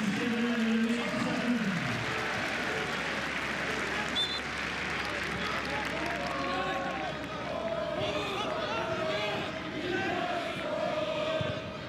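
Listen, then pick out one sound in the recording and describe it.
A stadium crowd murmurs and cheers steadily in a large open space.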